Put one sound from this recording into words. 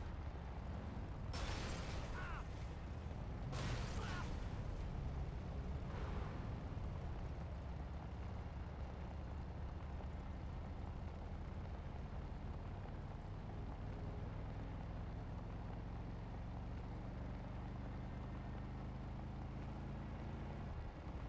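A truck engine roars steadily.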